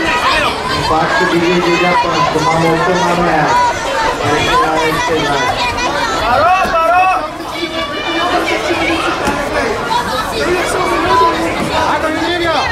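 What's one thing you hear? A crowd of spectators chatters and shouts loudly all around.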